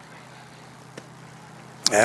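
A bat cracks against a baseball in the distance.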